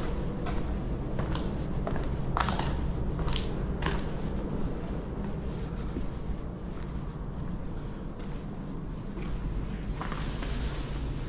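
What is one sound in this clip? Footsteps crunch over loose debris and broken plaster.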